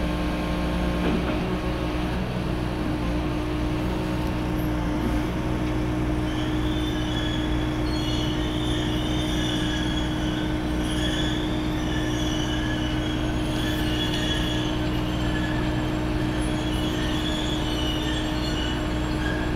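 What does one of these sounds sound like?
A large diesel track machine rumbles steadily close by.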